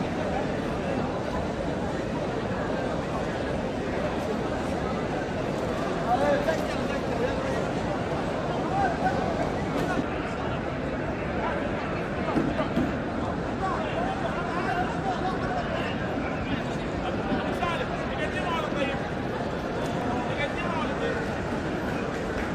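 A vast crowd murmurs and chatters in a wide open space.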